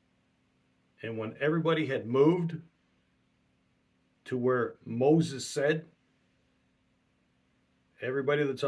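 A middle-aged man speaks calmly in short phrases through a microphone on an online call.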